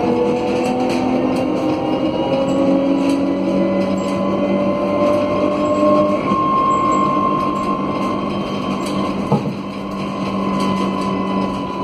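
Tyres roll along a paved road.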